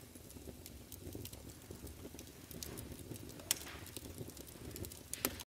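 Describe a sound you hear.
A fire crackles and pops in a fireplace.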